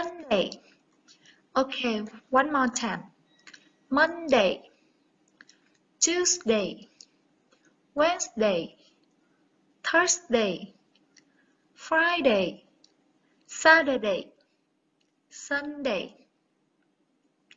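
A young woman speaks slowly and clearly into a microphone, pausing between words.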